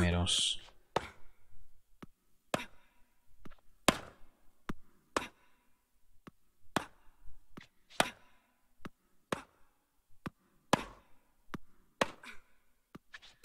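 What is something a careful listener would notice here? A tennis ball is struck back and forth in a steady rally, with sharp pops of the racket.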